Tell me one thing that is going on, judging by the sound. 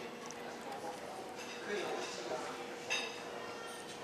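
Many people chatter in the distance in a large echoing hall.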